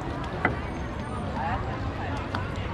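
Oars splash in the water.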